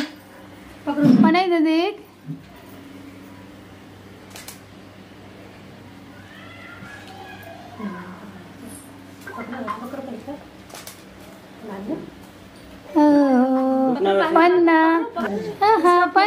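A woman speaks brightly close by.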